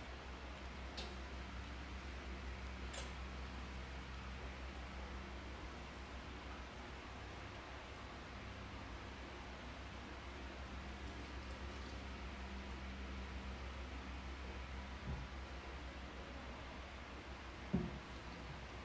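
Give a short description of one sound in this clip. Small metal objects clink and knock on a table.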